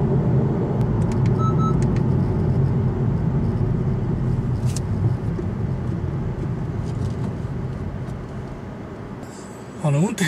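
A car engine hums low and steady, then fades.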